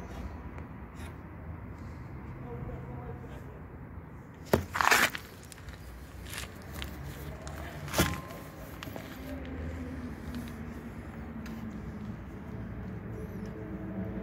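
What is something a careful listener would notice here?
Metal parts click and knock as hands handle them.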